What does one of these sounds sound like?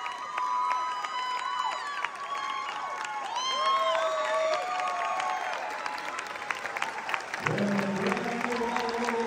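A crowd cheers loudly.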